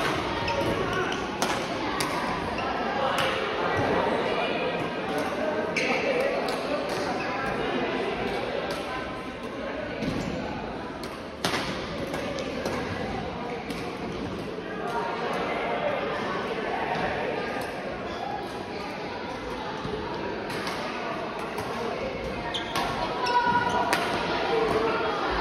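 Shuttlecocks are hit with sharp racket pops in a large echoing hall.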